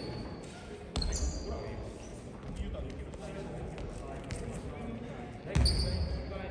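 A basketball bounces on a wooden court in an echoing gym.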